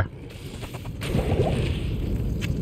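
A burst of fire roars up.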